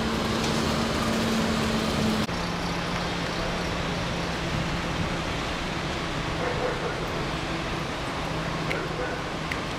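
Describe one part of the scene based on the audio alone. Footsteps shuffle on pavement outdoors.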